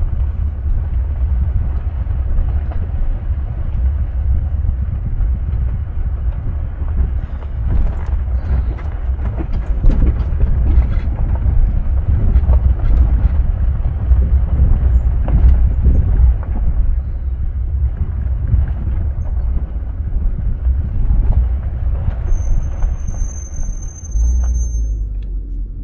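Tyres crunch and rattle over a bumpy dirt road.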